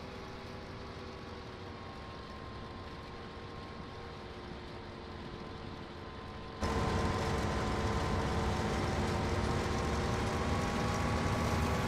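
A combine harvester's header rattles as it cuts through grain.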